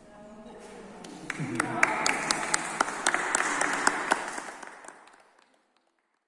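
A small group of people clap their hands in a large echoing hall.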